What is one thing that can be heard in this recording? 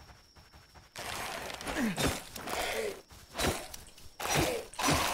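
Heavy blows land with dull thuds in a fight.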